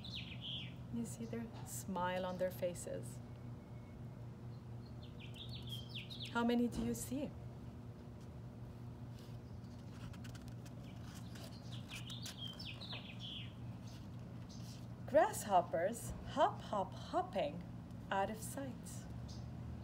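A woman reads aloud calmly and expressively, close by.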